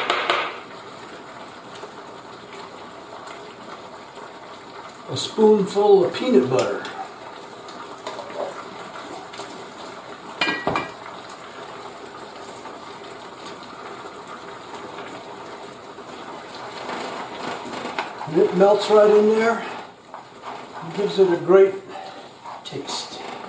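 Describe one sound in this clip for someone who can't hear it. Food sizzles steadily in a frying pan.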